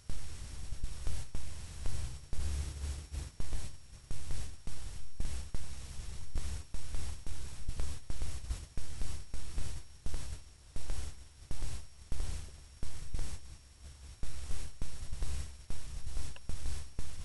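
Wind gusts rumble outdoors in bursts.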